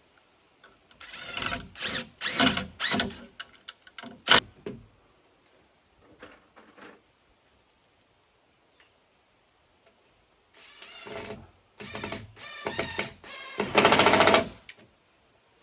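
An impact driver whirs in short bursts, driving screws into wood.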